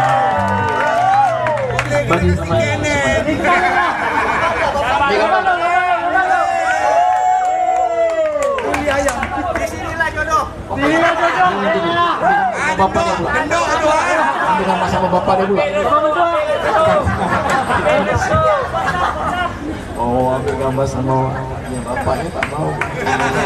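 Guitars strum and play along.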